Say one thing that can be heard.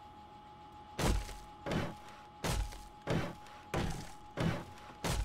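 A hammer knocks on wood in a steady rhythm.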